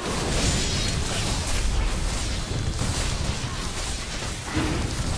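Magic blasts crackle and whoosh.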